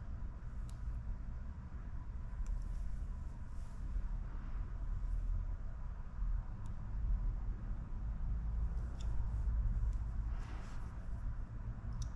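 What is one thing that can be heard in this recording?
Transfer tape crinkles and peels off a metal badge.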